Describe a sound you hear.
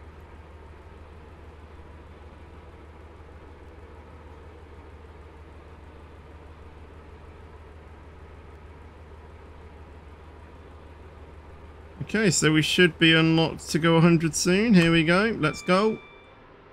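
A train engine hums low and steady as it rolls along the rails.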